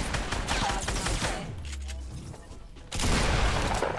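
Gunshots from a video game crack in quick bursts.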